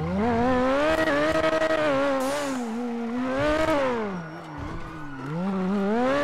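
A sports car engine revs loudly, its pitch rising and falling.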